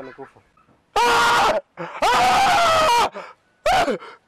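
A man shouts, crying out in anguish.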